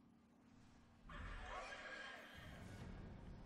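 A sudden rushing whoosh bursts out and dies away.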